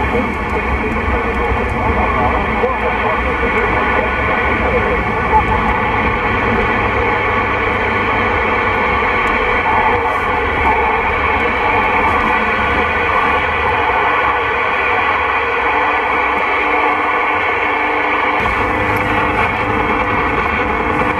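A CB radio hisses with static through its loudspeaker.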